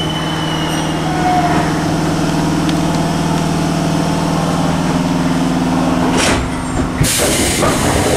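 A train's motor hums steadily while the carriage moves.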